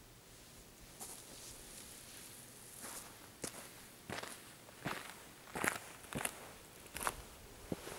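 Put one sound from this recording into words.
Footsteps crunch and scrape on rock, coming closer.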